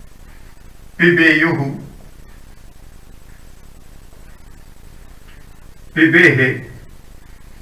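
A man speaks clearly and briefly, close by.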